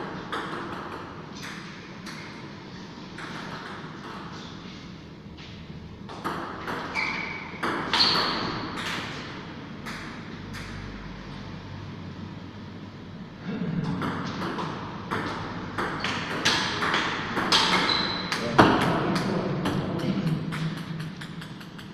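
A ping-pong ball clicks back and forth between paddles and the table in a small echoing room.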